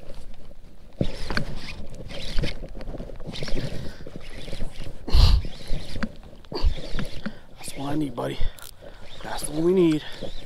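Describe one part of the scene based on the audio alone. Hands handle a fishing lure close by, rustling and knocking.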